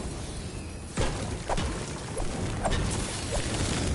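A pickaxe knocks against a wall in a video game.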